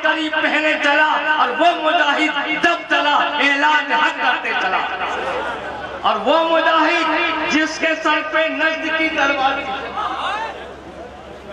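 A man speaks with passion through a loudspeaker, his voice ringing out loudly.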